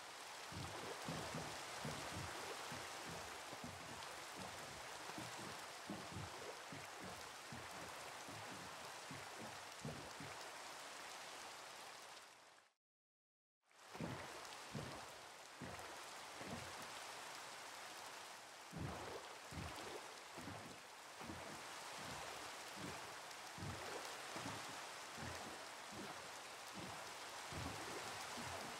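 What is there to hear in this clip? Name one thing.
Rain falls steadily on water.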